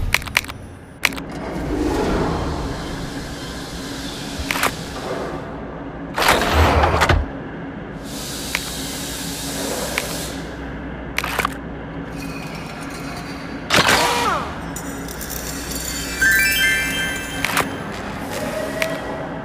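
Short electronic clicks and pings sound from menu taps.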